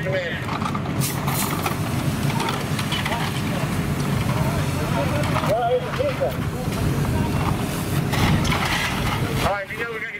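Water from a fire hose sprays and splashes onto a roof.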